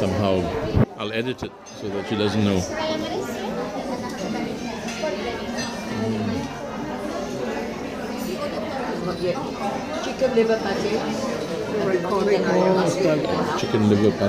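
Several people talk and chatter close by.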